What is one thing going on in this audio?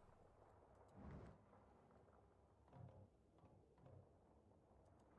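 Soft interface clicks and whooshes sound as menu pages switch.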